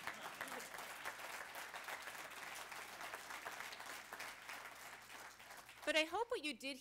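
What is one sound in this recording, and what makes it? A woman laughs softly near a microphone.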